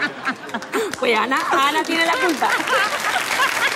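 A young woman laughs heartily into a microphone.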